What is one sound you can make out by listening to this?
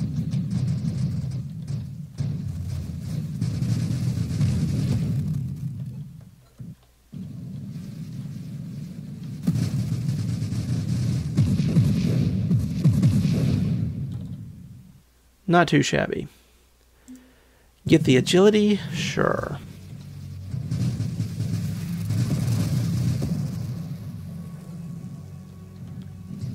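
Low explosions rumble and boom in a video game.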